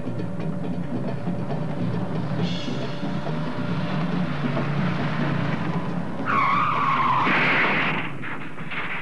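A car engine hums.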